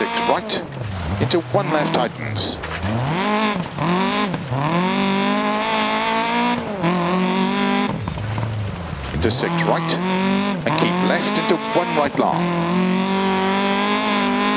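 A rally car engine revs hard, rising and falling as gears shift.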